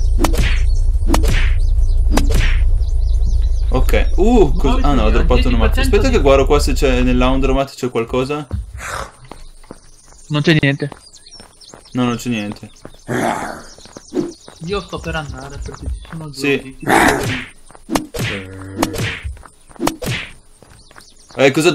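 An axe thuds against a body several times.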